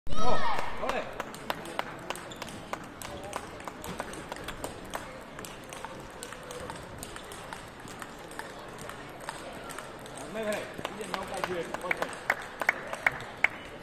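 Table tennis balls click sharply against paddles and tables in a large hall.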